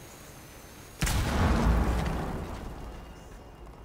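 A loud blast booms close by, then rumbles away.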